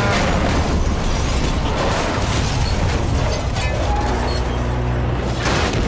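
A heavy truck crashes and scrapes along metal with a grinding roar.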